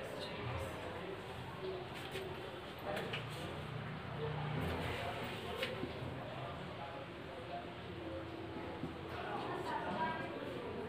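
A young woman explains calmly, close by.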